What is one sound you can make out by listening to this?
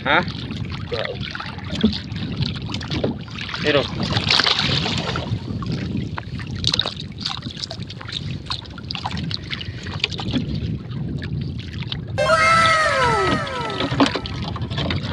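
Water splashes and laps against a small boat.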